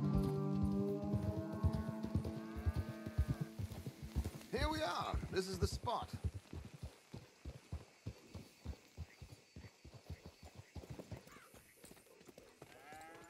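Horses' hooves clop steadily on a dirt path.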